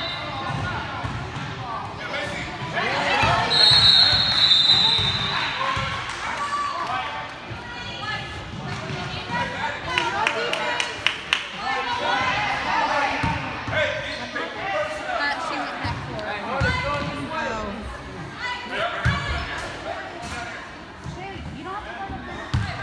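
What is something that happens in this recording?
A crowd of spectators cheers and chatters in a large echoing gym.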